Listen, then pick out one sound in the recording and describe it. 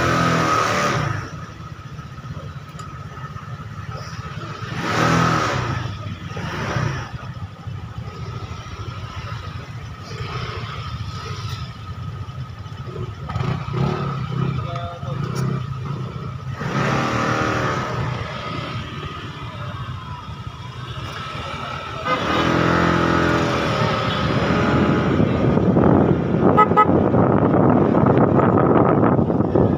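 A motorcycle engine hums close by.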